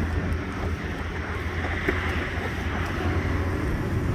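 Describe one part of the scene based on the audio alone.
A minivan's power sliding door hums and slides open.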